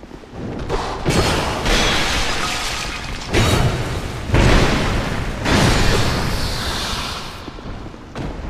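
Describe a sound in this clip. Clay pots shatter and crash.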